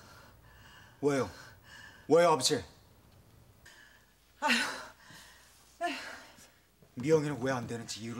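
A young man speaks with emotion, nearby.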